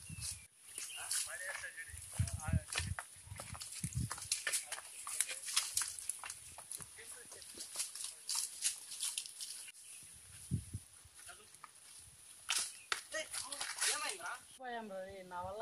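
Footsteps crunch on dry leaves and stony ground outdoors.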